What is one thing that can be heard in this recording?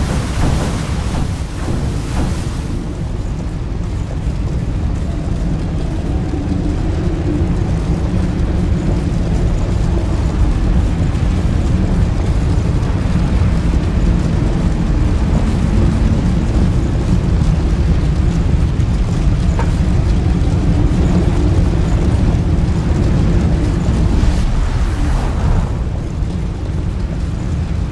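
Flames roar and crackle steadily all around.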